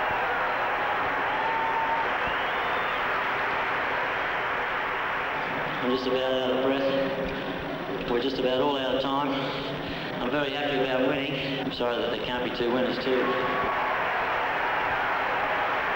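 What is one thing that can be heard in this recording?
A crowd cheers and applauds loudly in a large arena.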